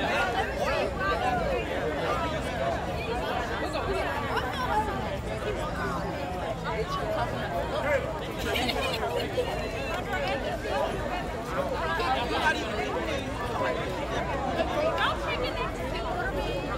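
Many people talk and shout at once outdoors.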